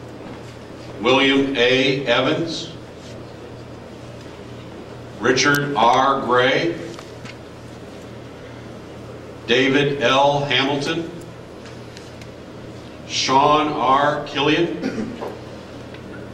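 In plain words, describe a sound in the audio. A man speaks loudly in short, measured phrases, echoing through a large hall.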